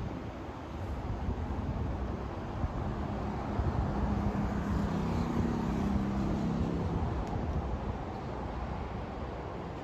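Cars rush past on an elevated road below.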